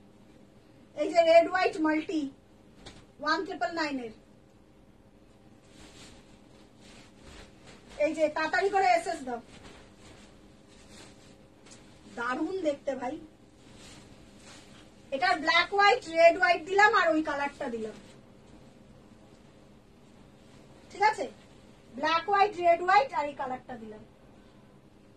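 A young woman speaks calmly and clearly, close by, in short bursts.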